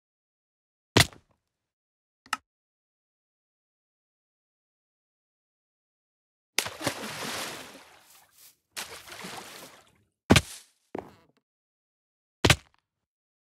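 A game character hits the ground with a short, hard thud.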